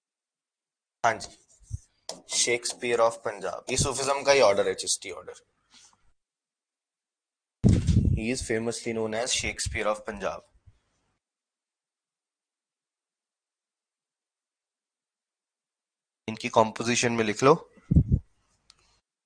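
An elderly man speaks calmly through a close microphone, in short bursts with pauses.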